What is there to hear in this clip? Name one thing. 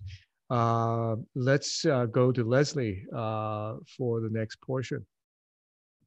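A man speaks with animation through an online call.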